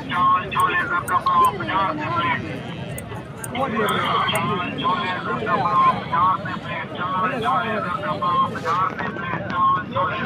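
A brush scrapes through a sheep's thick wool.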